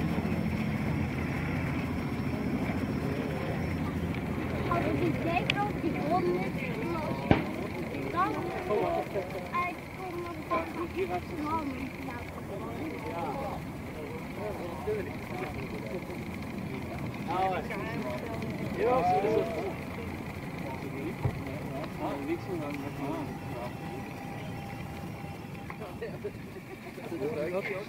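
A four-engine propeller plane drones steadily overhead, its engines throbbing.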